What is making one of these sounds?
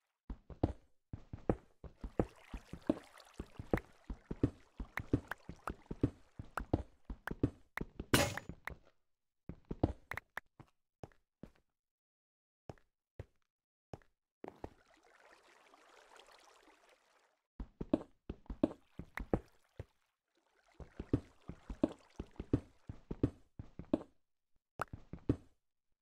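A pickaxe chips rapidly at stone with dull knocks.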